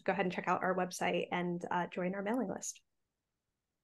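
A woman talks calmly over an online call.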